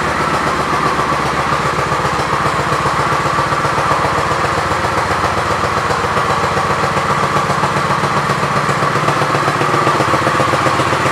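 A motorcycle engine idles with a steady, rapid thumping.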